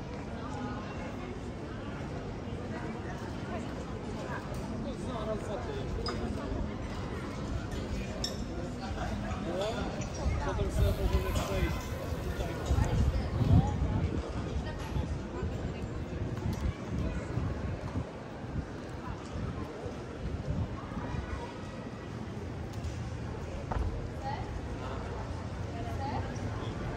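Men and women talk and chat nearby outdoors.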